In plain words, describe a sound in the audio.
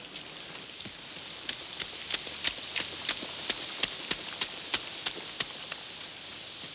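Footsteps splash quickly across wet grass.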